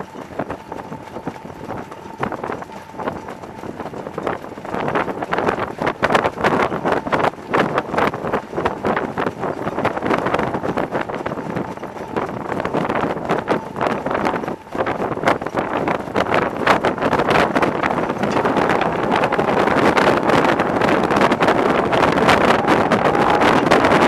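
Cart wheels rattle and clatter over the dirt.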